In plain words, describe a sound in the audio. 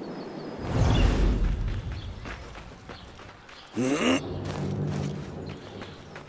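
A man's footsteps run on stone.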